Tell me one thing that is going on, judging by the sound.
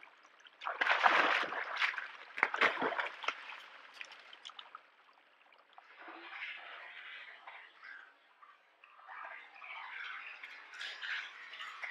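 A large animal splashes heavily through shallow water.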